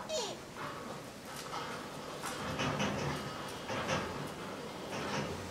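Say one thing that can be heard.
An animal breathes softly close by.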